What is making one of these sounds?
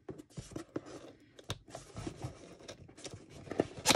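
A cardboard box lid slides open.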